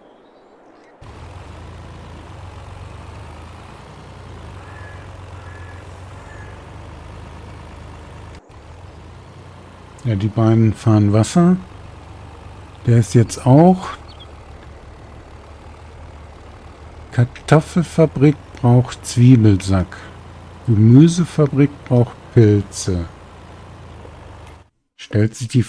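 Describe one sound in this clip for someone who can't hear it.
A truck engine hums steadily as the truck drives along.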